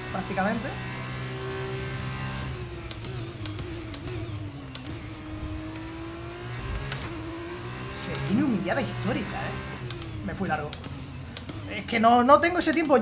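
A racing car engine whines and shifts gears.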